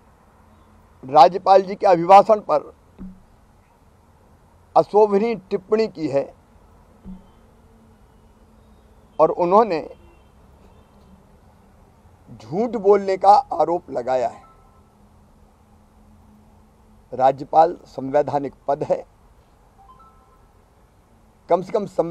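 A middle-aged man speaks calmly in short phrases, close to a microphone.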